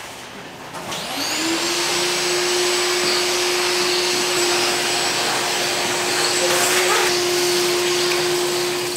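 A vacuum hose switches on and hums and hisses steadily.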